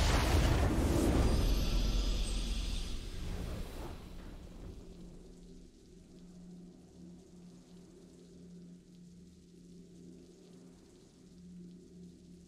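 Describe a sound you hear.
A triumphant game fanfare plays and then fades to a low hum.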